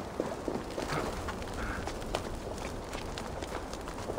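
Hands and boots scrape and knock against rock while climbing.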